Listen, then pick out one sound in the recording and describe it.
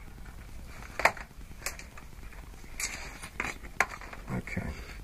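Small objects click and rattle on a table.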